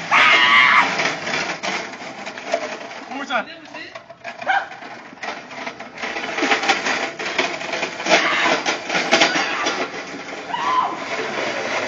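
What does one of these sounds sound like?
The small hard wheels of a flatbed cart rattle over asphalt.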